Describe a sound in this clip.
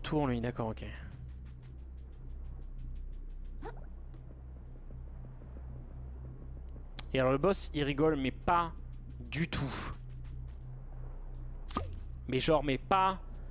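A young man talks with animation into a close microphone, pausing between bursts.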